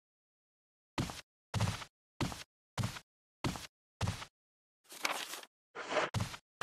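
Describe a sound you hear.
Footsteps tap on a floor in a quiet room.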